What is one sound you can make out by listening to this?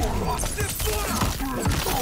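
An icy blast hisses and crackles.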